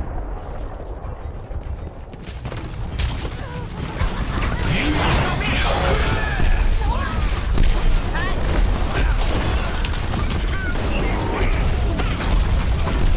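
Gunfire and energy blasts crackle in rapid bursts.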